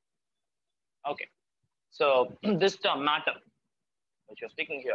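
A young man speaks calmly and close up through a headset microphone, in short phrases.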